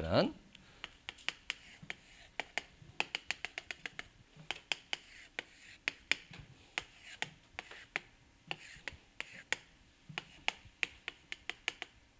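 A marker taps and scrapes on a board.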